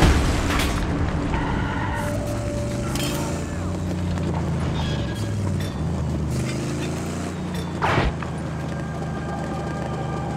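Tyres crunch over rough gravel.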